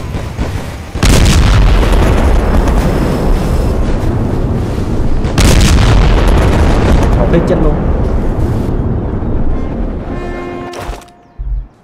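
Guns fire in a rapid, roaring barrage.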